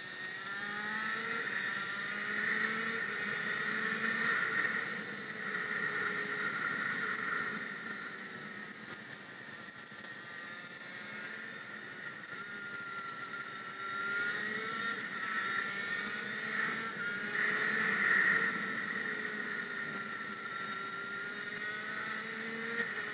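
A kart engine buzzes close by, its pitch rising and falling as it speeds up and slows through the bends.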